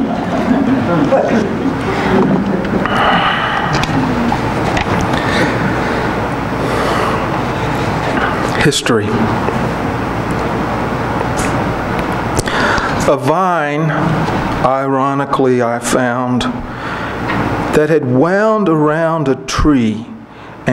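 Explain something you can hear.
A man reads aloud calmly into a microphone in a small echoing room.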